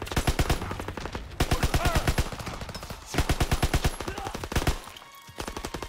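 A machine gun fires loud rapid bursts.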